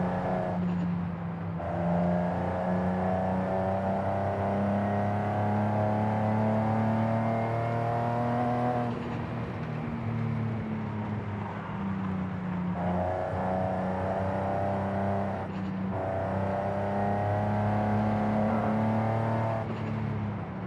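A car engine revs up and down steadily as a car speeds along a road.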